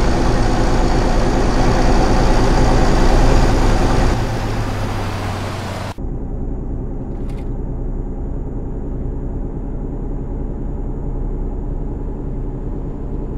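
A truck engine hums steadily while driving at speed.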